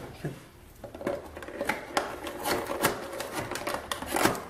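Cardboard tears and crackles.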